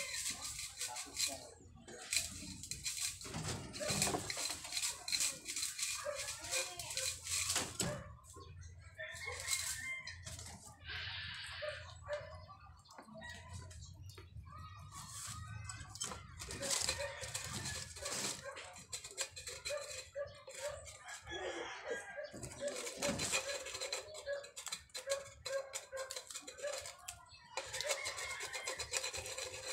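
Small rabbits rustle and shuffle about in dry hay close by.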